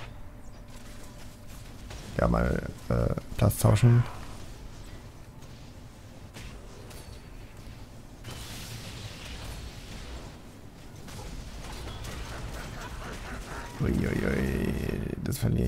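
Fantasy battle sound effects clash and crackle with magic blasts.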